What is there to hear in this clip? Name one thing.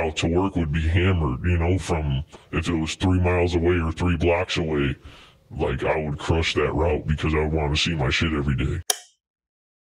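A man speaks rhythmically into a close microphone.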